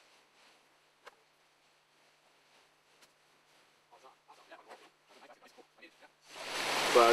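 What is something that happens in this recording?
Twigs and branches snap and rustle close by.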